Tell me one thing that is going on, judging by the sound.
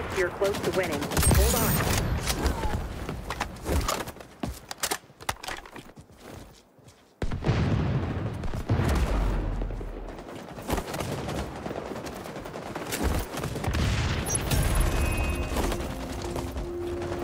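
A man talks through a headset microphone.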